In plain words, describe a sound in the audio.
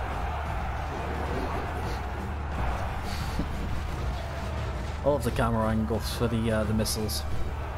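A large crowd of soldiers rumbles and shouts in a distant battle din.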